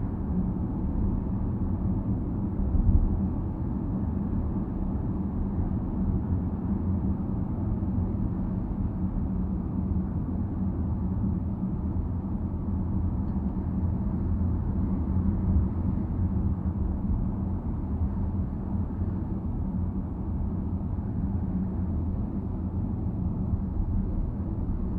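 Tyres roll steadily on a paved road.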